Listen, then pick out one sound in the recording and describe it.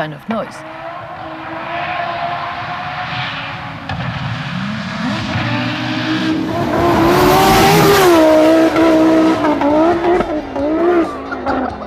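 A rally car engine roars and revs as it races past.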